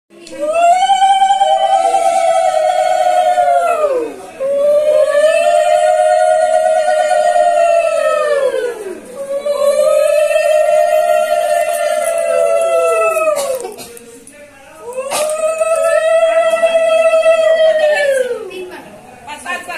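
A conch shell is blown in long, loud blasts that rise and then sag in pitch.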